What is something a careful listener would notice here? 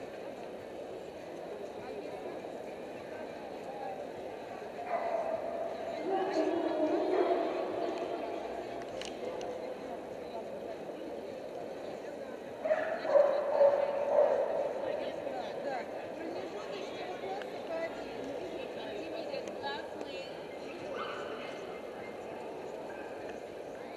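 A crowd murmurs throughout a large echoing hall.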